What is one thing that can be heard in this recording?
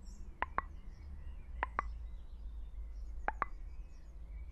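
Short sharp menu clicks sound.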